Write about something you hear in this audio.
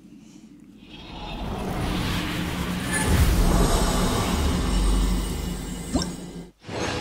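A deep magical rumble swells and shimmers, then fades.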